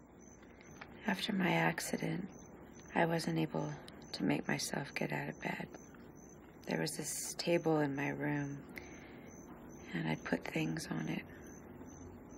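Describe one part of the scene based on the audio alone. A young woman speaks softly and calmly nearby.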